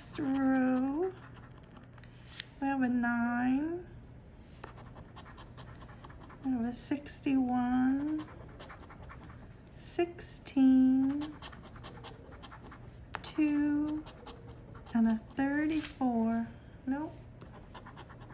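A coin scratches across a card.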